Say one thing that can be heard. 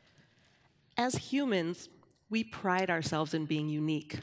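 A woman speaks expressively, close by.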